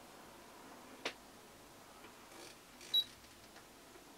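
A plastic remote control clicks as a hand handles it.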